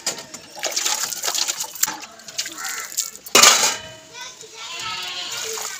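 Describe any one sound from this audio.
Water splashes as dishes are rinsed.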